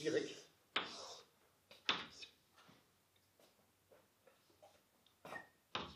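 A young man speaks calmly in a room with a slight echo.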